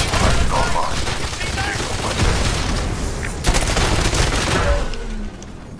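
An explosion booms with crackling fire.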